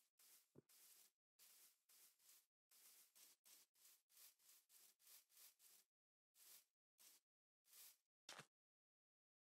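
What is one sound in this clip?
Footsteps pad quickly over grass.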